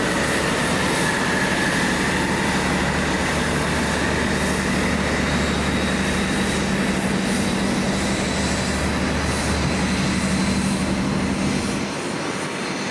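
A diesel locomotive's engine roars loudly as a train pulls away close by.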